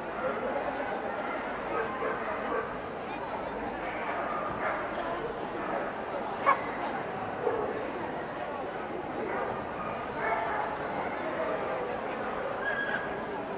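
A crowd of people chatters steadily in a large echoing hall.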